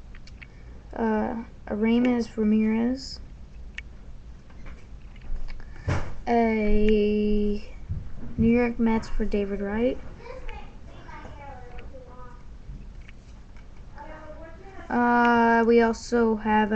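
A boy speaks with animation close to a webcam microphone.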